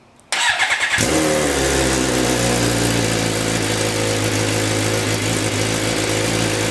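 A motorcycle engine idles loudly with a deep, steady rumble.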